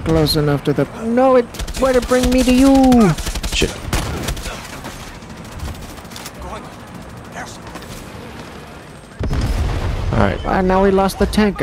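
Shotgun blasts fire in short bursts.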